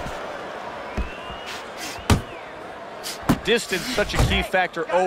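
Punches thud against a boxer's body.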